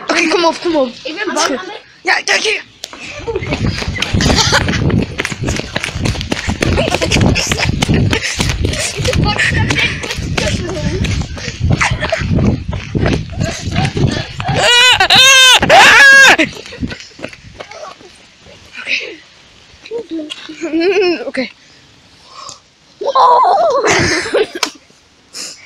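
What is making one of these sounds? A boy talks and shouts excitedly close by.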